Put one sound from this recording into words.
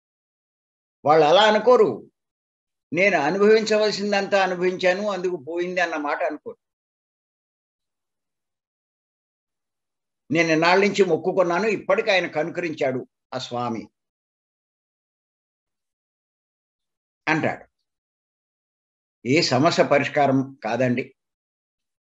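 An elderly man speaks with animation over an online call, in bursts with pauses.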